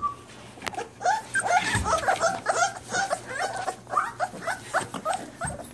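Puppies whine and yelp in high, squeaky cries.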